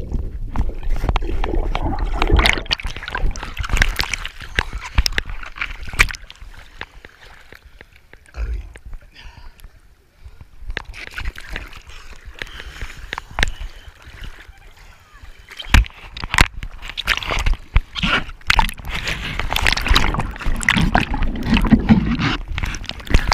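Water gurgles and rushes underwater.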